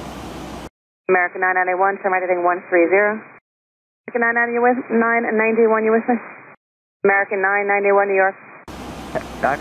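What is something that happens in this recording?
A young woman speaks calmly into a microphone, heard through a radio.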